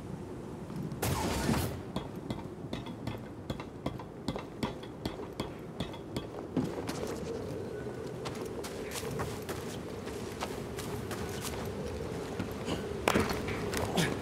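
A heavy thud sounds as someone lands from a jump.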